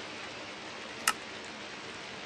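Menu buttons click.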